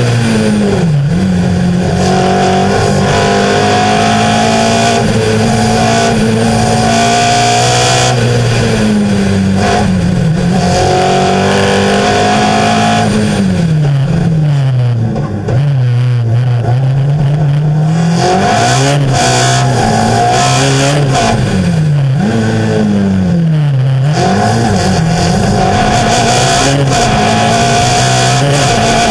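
A race car engine roars loudly close by, revving up and down through the gears.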